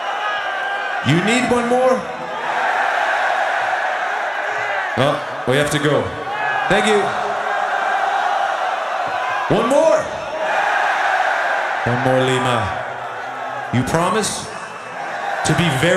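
A large crowd cheers and roars steadily outdoors.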